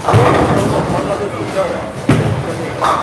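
A bowling ball rumbles down a lane.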